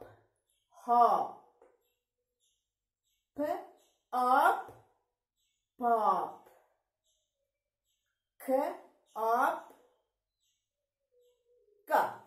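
A woman speaks clearly and slowly, pronouncing single words with pauses between them, close to the microphone.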